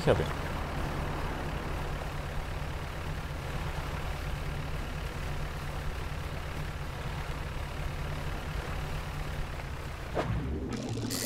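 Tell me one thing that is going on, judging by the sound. A small boat engine chugs steadily.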